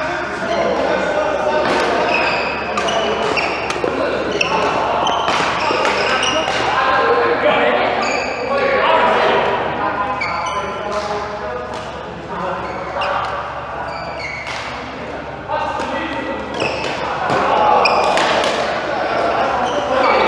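Badminton rackets hit a shuttlecock back and forth with sharp pops in a large echoing hall.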